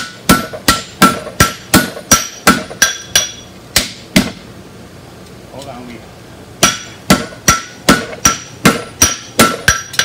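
A hammer strikes hot metal on an anvil with sharp, ringing blows in a quick rhythm.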